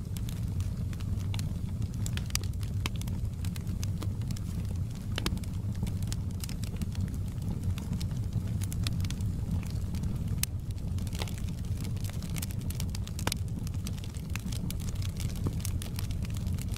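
Burning logs crackle and pop sharply.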